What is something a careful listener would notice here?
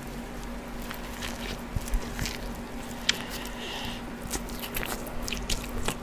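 A young man chews food with wet, crunchy bites close to a microphone.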